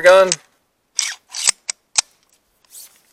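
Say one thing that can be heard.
Parts click and snap together.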